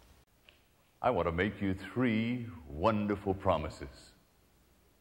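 A middle-aged man speaks warmly into a microphone.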